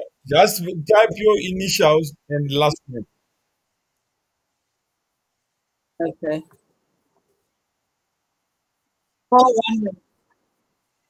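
A woman speaks in short bursts over an online call.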